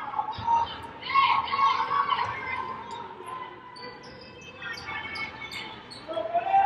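A small crowd murmurs in a large echoing arena.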